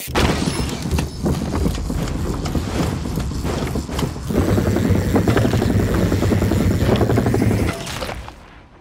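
Bike tyres rumble and rattle over wooden planks.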